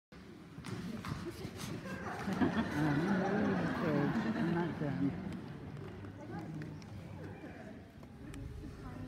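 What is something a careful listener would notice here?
An audience claps in applause in a large hall.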